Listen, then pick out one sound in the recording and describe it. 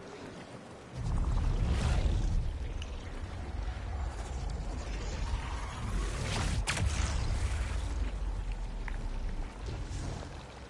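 A deep magical energy surge rumbles and roars.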